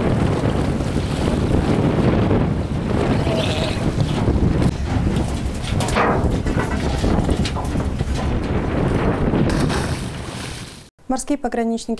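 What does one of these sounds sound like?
Wind roars loudly over open water.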